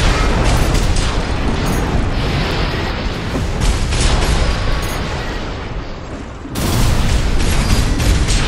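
Rocket thrusters blast loudly.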